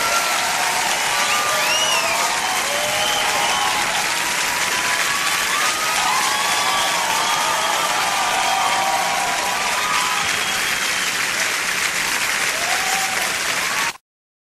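A large crowd cheers and whoops loudly in a big hall.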